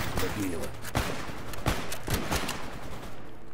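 A rifle bolt clicks and clacks as it is worked.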